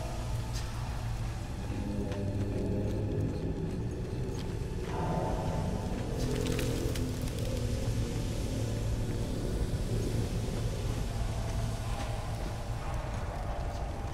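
Footsteps clank on metal grating.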